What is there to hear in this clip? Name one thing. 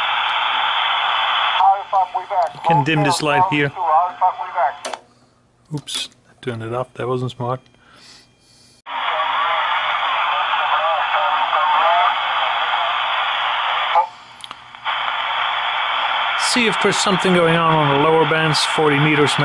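A radio loudspeaker hisses with loud static.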